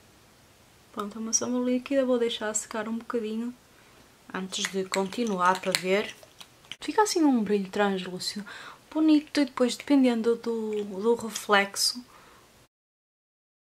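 A woman talks calmly and close to a microphone.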